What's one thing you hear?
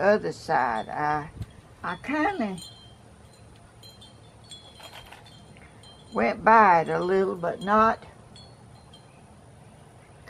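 Small glass tiles clink softly as they are handled.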